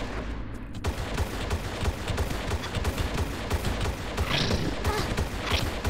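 Pistols fire in rapid, steady bursts of shots.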